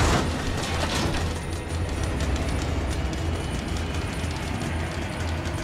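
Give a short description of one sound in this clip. Feet knock on ladder rungs while climbing down.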